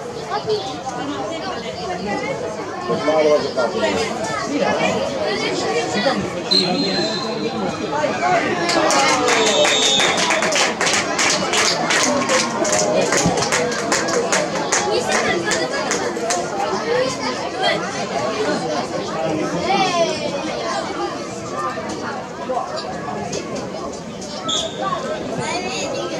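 Children shout and call out across an open playing field.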